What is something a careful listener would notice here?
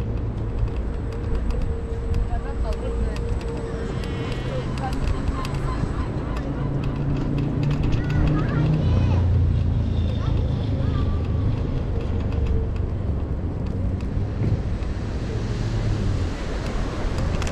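Wind rumbles steadily across an open outdoor space.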